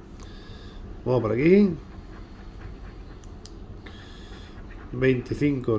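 A coin scratches across a card in short rasping strokes.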